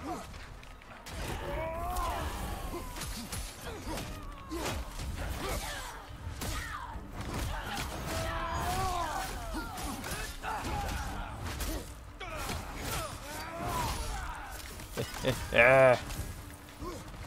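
Weapons strike and clash in a fierce fight.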